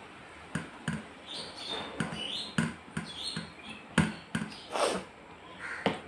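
Fingers squelch through wet food and tap a metal plate close by.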